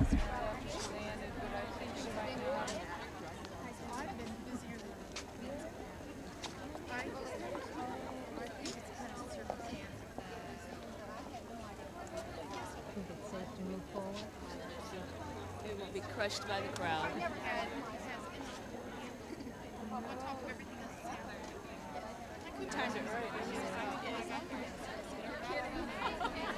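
A large crowd of people chatters and calls out outdoors.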